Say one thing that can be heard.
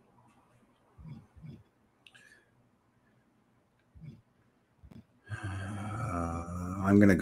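A middle-aged man speaks briefly and calmly, close to a microphone.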